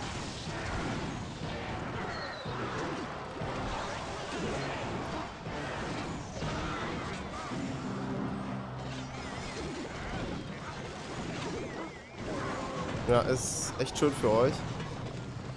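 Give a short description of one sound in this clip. Cartoonish battle sound effects clash and pop.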